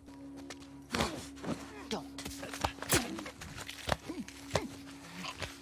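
Heavy blows land with dull thuds in a close scuffle.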